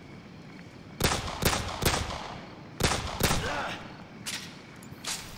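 A pistol fires several sharp shots close by.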